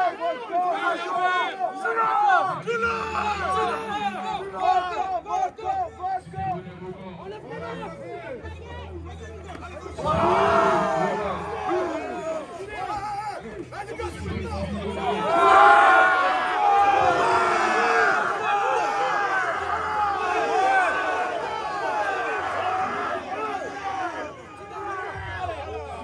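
A large crowd of young men shouts and cheers outdoors.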